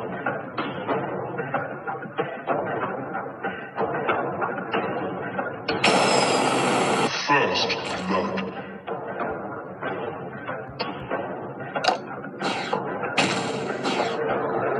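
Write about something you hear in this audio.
Fast game music and sound effects play from a tablet's speaker.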